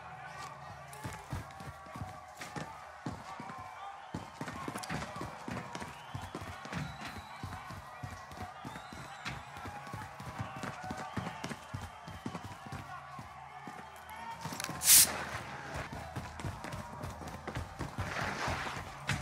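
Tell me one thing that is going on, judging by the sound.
Footsteps thud quickly on a hard floor.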